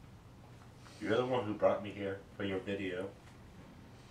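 A second young man answers calmly and close by.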